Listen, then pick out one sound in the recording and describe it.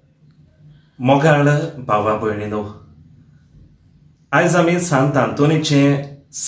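A young man speaks calmly and clearly, close to a microphone.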